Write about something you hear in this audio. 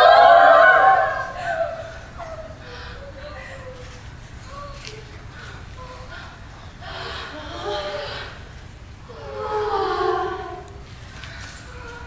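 Young people's voices call out together in a large echoing hall.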